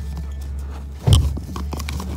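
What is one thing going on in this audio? A loud bump knocks against the microphone.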